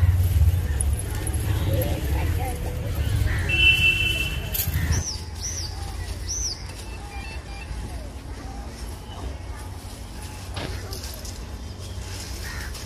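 Wind blows against the microphone outdoors.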